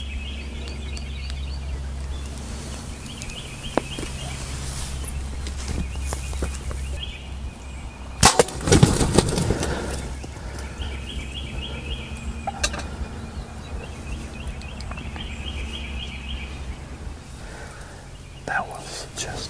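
Turkeys purr and cluck nearby.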